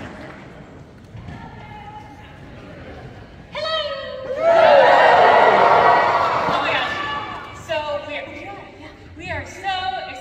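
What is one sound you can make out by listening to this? A young woman speaks with animation through a microphone over loudspeakers in a large hall.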